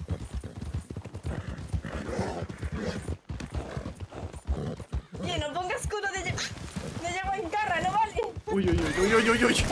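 Horse hooves gallop quickly over hard ground.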